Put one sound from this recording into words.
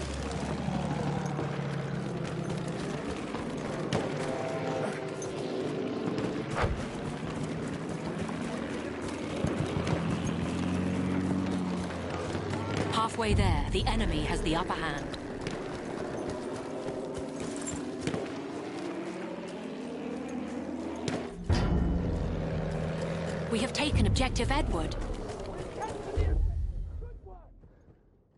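Gunshots crack now and then amid a battle.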